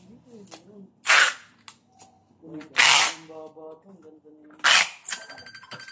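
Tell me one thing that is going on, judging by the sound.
Packing tape screeches as it is pulled off a roll.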